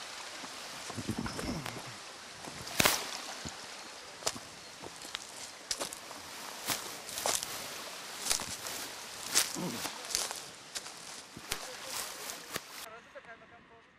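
Footsteps crunch on a rocky path outdoors.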